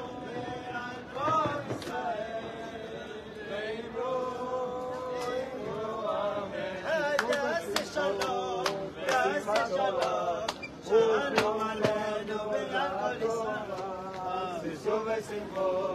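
A group of men sing and chant together outdoors.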